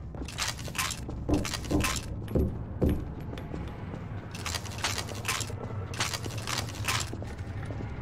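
Footsteps crunch over scattered debris.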